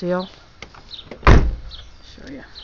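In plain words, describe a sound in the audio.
A car door slams shut with a heavy thud.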